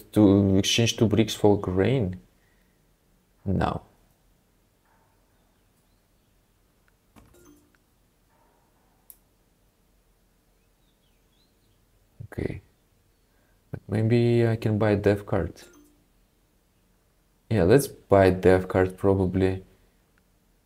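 A young man talks casually into a close microphone, in short bursts with pauses.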